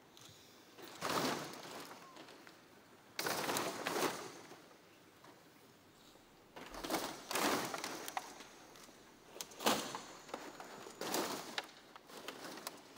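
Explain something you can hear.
Plastic bottles crunch and clatter as bundles of them are dropped onto a heap.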